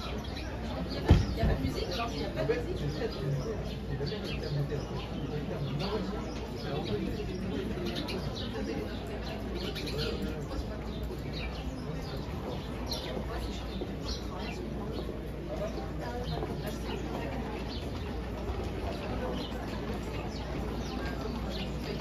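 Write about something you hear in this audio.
A crowd of men and women chatter in a low murmur outdoors.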